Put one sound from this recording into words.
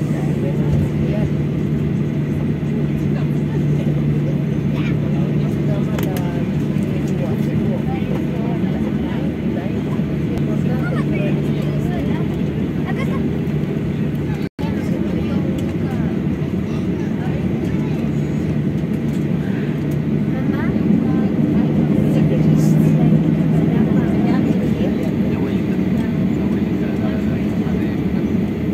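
Aircraft wheels rumble over the tarmac.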